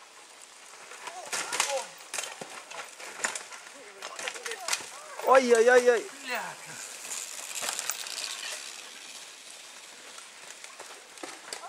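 Bicycle tyres roll and skid over a dirt trail.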